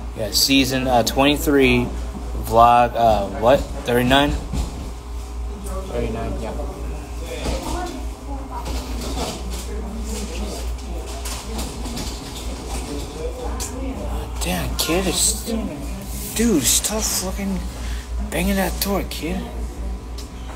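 A young man talks close to the microphone in a relaxed way.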